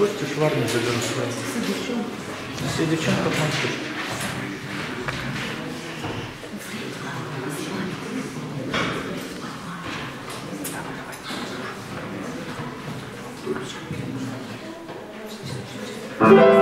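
A piano plays chords along with a saxophone.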